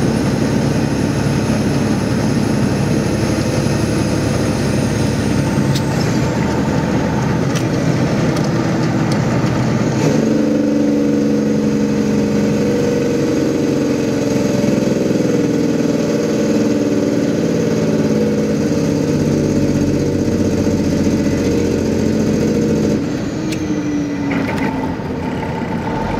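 A car's engine drones steadily as it drives along a highway.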